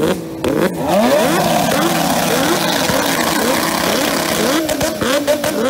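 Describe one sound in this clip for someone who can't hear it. A burst of flame roars from a motorcycle exhaust.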